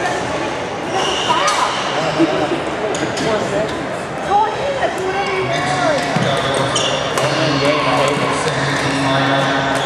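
Voices of young people chatter and call out in a large echoing hall.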